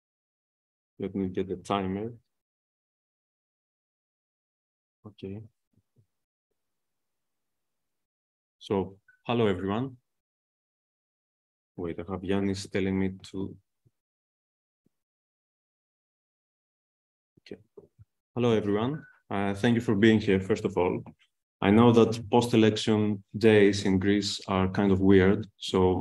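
A man speaks calmly into a microphone over an online call, with pauses.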